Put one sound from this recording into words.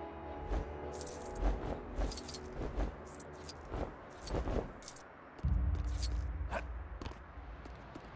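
Small coins jingle and chime in quick bursts as they are picked up.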